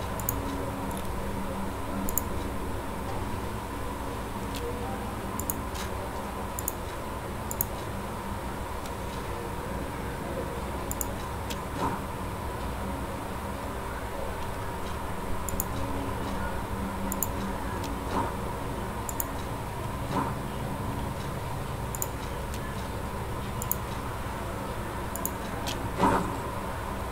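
Soft menu clicks tick now and then as selections change.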